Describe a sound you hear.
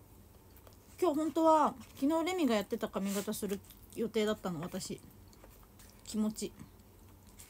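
A young woman speaks animatedly and close up.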